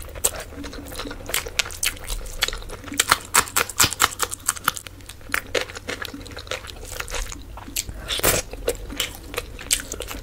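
A woman chews and smacks wet food loudly, close to a microphone.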